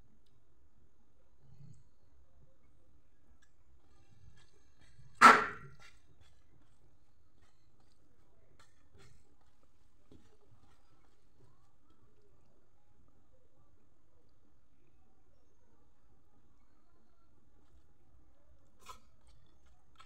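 Fingers squish and mix soft rice on a metal plate.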